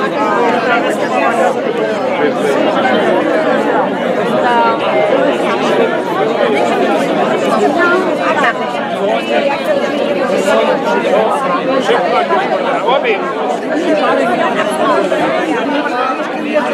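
A large crowd of men and women chatters loudly all around, close by.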